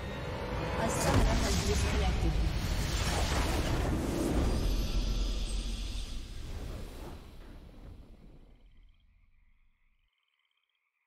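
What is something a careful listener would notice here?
A triumphant game fanfare swells and then fades away.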